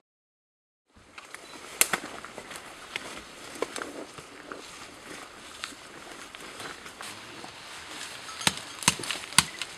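Bark is pulled and scraped from a tree trunk with crackling snaps.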